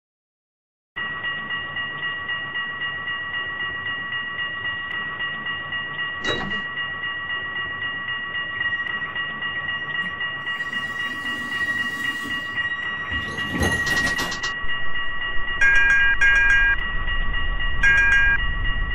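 A tram's electric motor hums steadily.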